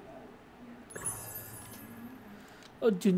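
A bright game reward chime rings out.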